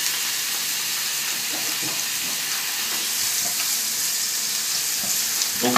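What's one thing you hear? A wooden spatula scrapes and knocks against a frying pan.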